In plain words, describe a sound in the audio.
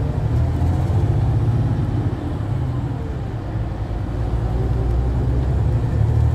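A bus engine hums low and steady from inside the cabin.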